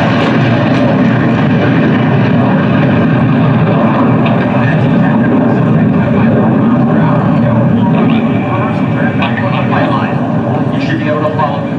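A jet engine roars loudly overhead, easing slightly as the jet moves away.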